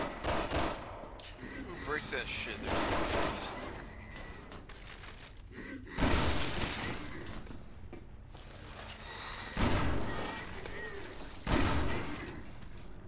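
Gunshots fire loudly, one after another, with a short echo.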